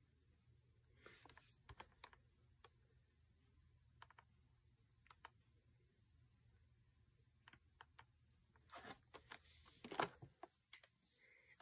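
A plastic toy package crinkles in a young woman's hands.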